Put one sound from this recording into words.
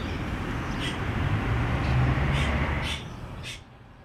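Cars drive along a street and approach.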